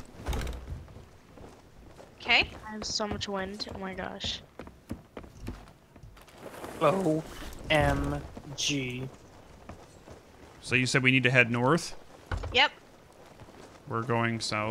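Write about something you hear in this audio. Waves lap softly against a wooden ship's hull.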